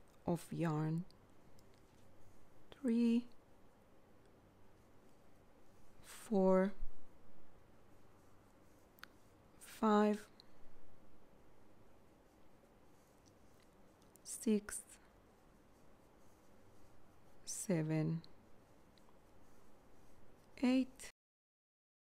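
A crochet hook softly pulls yarn through loops.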